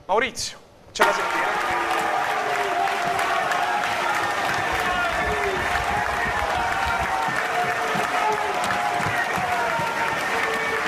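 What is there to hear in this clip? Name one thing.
A stadium crowd chants and sings loudly in unison.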